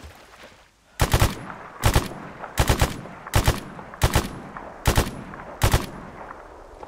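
A rifle fires a series of loud single shots.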